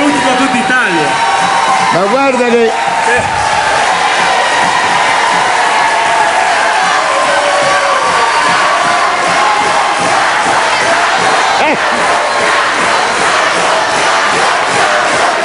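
A crowd of women screams with excitement.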